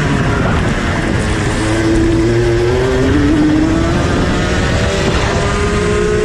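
Another kart engine whines nearby, rising in pitch as it passes.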